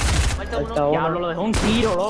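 Building pieces shatter and clatter in a game.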